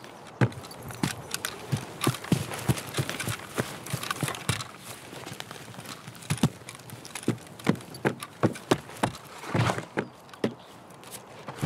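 Footsteps tread through grass and over wooden floorboards.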